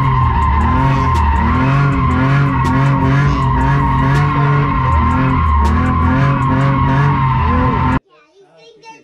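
A car engine roars loudly at high revs inside the cabin.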